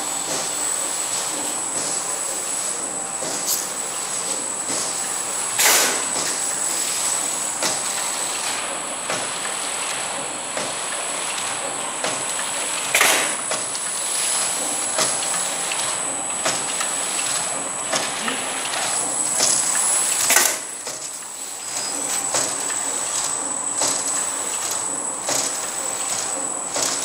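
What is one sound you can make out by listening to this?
A packaging machine hums and clatters steadily.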